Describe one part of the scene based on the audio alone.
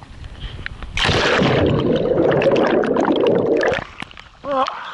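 Water rushes and bubbles loudly as the microphone goes under the surface.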